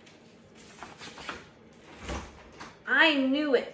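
A stiff sheet of paper rustles as it is handled.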